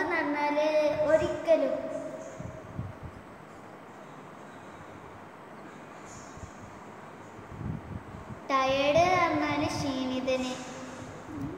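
A young girl sings in a soft, drawn-out voice nearby.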